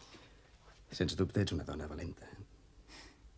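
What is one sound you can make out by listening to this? A man speaks softly close by.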